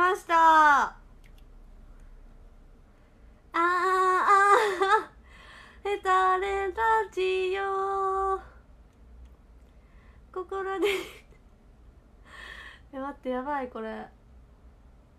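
A young woman speaks close to a microphone in a high, animated voice.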